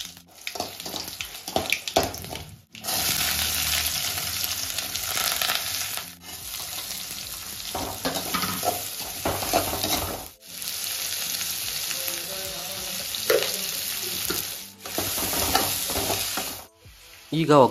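Food sizzles and crackles in hot oil.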